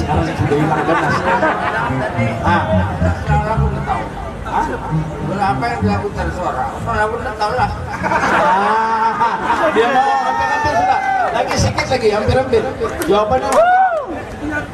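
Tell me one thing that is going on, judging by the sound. Acoustic guitars strum along.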